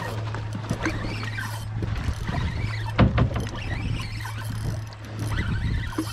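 A fishing reel whirs and clicks as it is wound.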